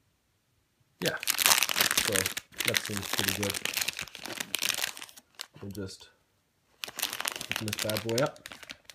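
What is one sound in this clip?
A foil packet crinkles as it is handled.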